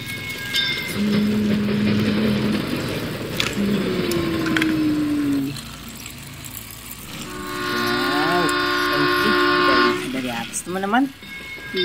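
A toy train motor whirs as it runs along plastic track.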